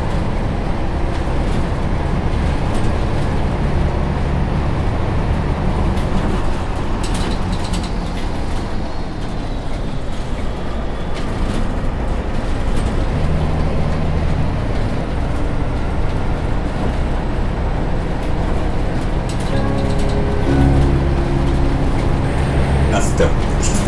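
Tyres roll on asphalt under a city bus.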